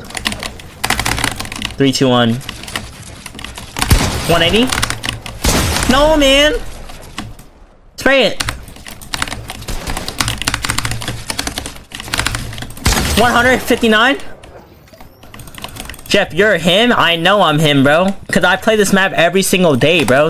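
Game gunfire and building sounds click and crack rapidly.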